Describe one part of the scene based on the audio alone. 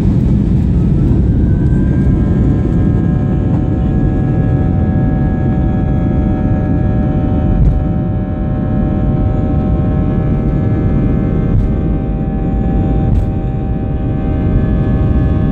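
A jet engine's whine rises in pitch and holds high as the plane speeds up.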